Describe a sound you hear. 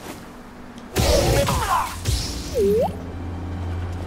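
A lightsaber clashes loudly.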